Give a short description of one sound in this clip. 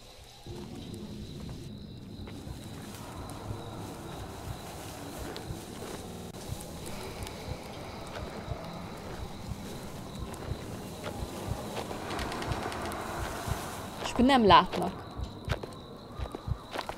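Footsteps crunch through grass at a steady walking pace.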